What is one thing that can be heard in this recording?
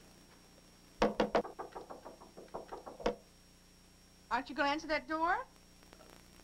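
A woman talks into a telephone calmly.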